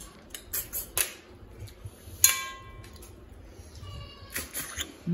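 Metal dishes and cutlery clink on a table, one ringing briefly.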